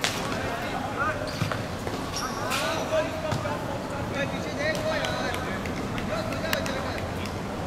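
Players' shoes squeak sharply on a hard court.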